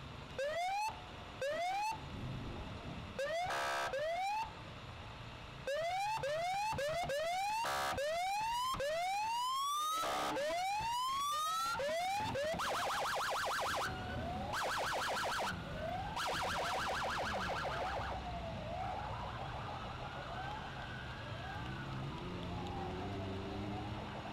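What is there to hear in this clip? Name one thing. Police sirens whoop and wail repeatedly close by.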